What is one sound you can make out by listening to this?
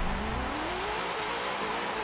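Tyres screech on tarmac.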